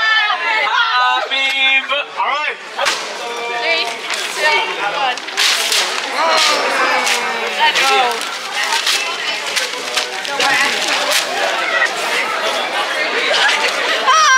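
A crowd of young people cheers and shouts with excitement in an echoing hall.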